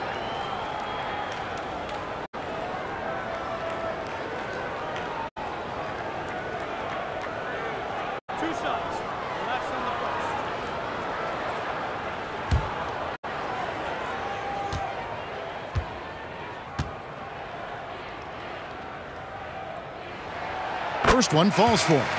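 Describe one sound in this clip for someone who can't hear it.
An arena crowd murmurs steadily.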